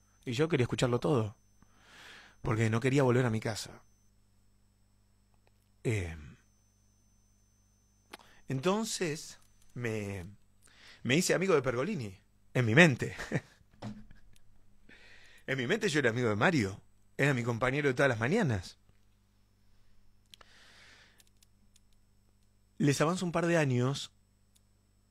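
A young man speaks close to a microphone, calmly and in short bursts with pauses.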